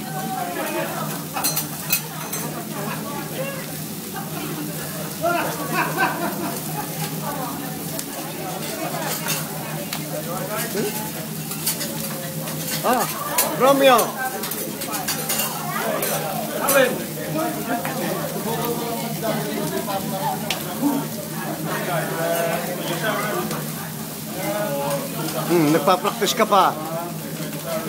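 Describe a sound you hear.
Voices chatter in a busy room.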